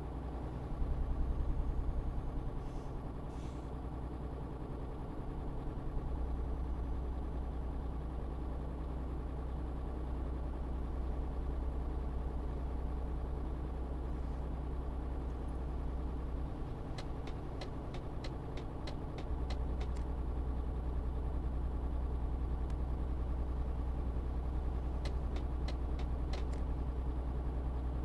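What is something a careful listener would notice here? A truck engine hums steadily, droning low throughout.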